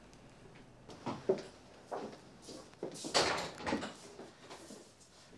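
A middle-aged woman speaks loudly and upset.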